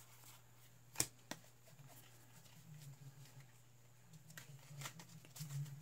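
Cards tap down on a soft mat.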